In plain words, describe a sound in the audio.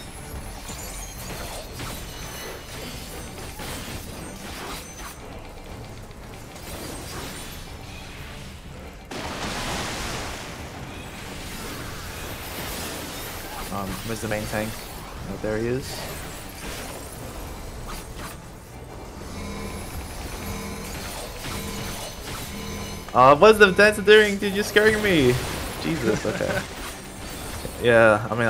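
Combat sound effects of a fantasy video game boss fight crackle and boom.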